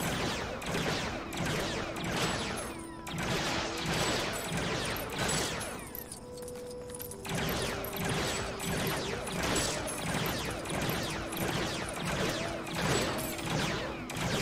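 Studs jingle and clink as they scatter and are collected.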